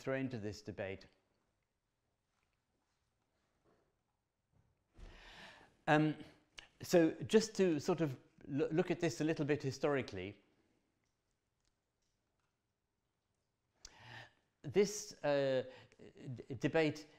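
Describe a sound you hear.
An elderly man talks calmly to an audience through a microphone, with pauses.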